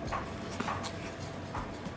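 A young man chews food with his mouth full.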